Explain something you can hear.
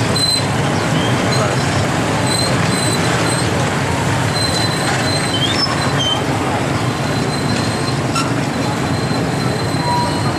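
Motorbike horns beep now and then.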